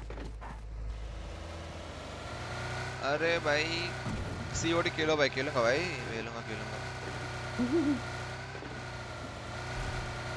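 A car engine hums and revs.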